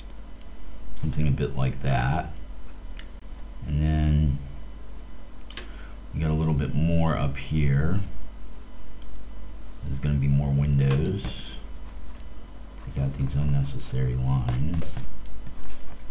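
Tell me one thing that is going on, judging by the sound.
A man speaks calmly into a headset microphone, in short bursts.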